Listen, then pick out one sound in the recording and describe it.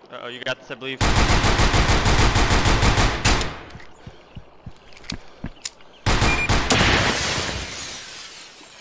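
Gunshots fire in rapid, loud bursts.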